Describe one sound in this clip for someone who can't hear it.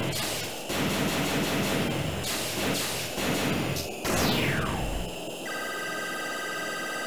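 A futuristic racing craft's engine roars at high speed.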